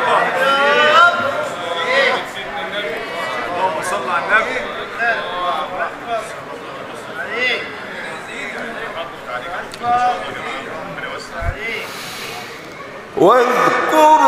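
A crowd of men calls out in response.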